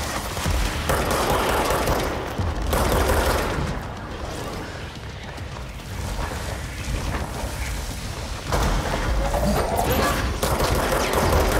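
Debris and rubble crash and scatter.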